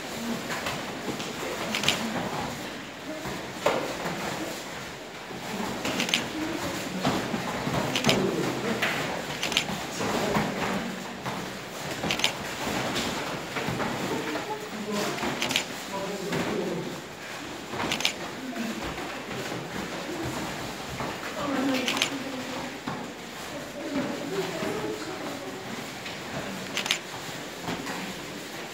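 Bare feet thud and slap on a padded mat as people kick.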